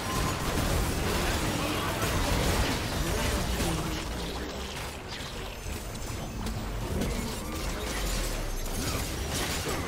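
Magic blasts and sharp impacts crackle in a fast fight.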